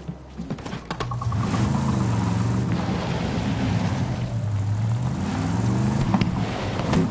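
A vehicle engine drones and revs up and down.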